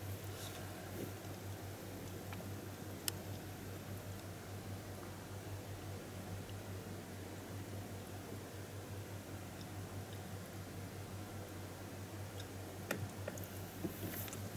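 A sleeping puppy breathes softly and steadily.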